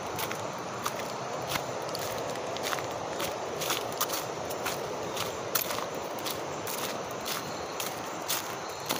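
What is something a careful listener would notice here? A river flows steadily nearby.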